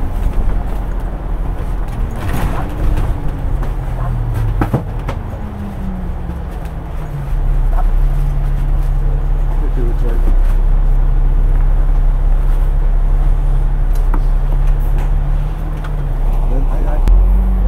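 Traffic passes on the road outside.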